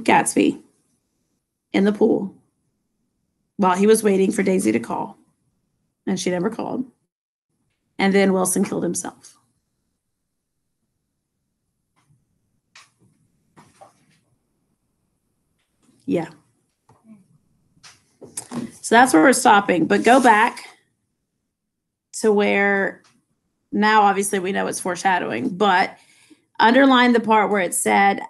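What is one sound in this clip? A middle-aged woman speaks calmly in short phrases, heard close through a computer microphone.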